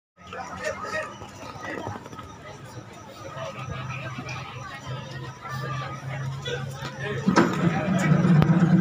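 A group of men sing together through loudspeakers, heard from a distance outdoors.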